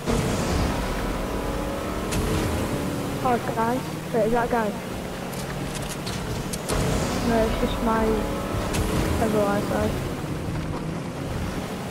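A motorboat engine hums steadily.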